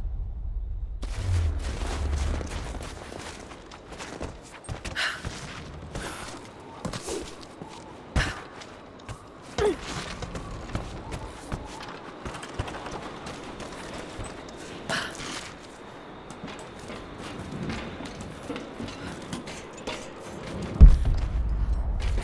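Footsteps crunch through snow and thud on wooden boards.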